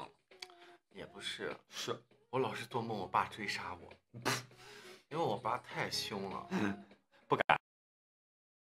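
A young man talks animatedly and close up into a microphone.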